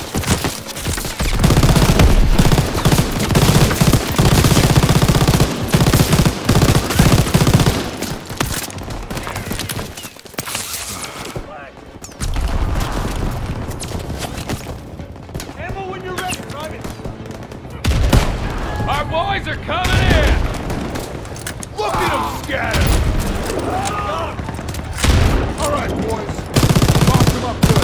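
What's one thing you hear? A heavy machine gun fires rapid bursts.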